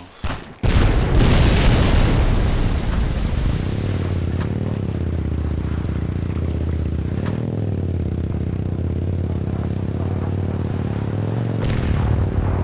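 A quad bike engine hums and revs as it drives over rough ground.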